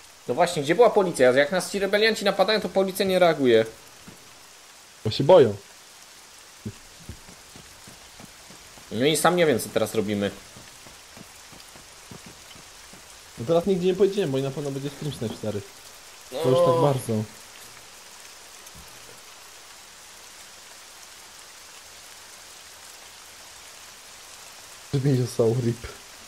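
A young man talks animatedly into a close microphone, in short bursts.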